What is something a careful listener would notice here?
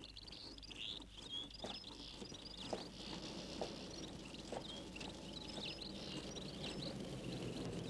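A man's footsteps crackle through dry brush.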